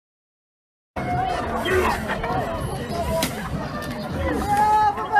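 A crowd of people shouts and yells outdoors.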